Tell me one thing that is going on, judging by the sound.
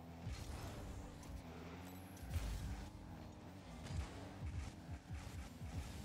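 A video game car engine hums and roars steadily.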